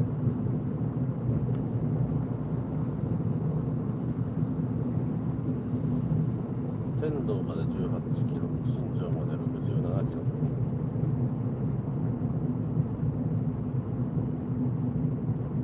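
A car engine hums steadily with tyres rolling on the road.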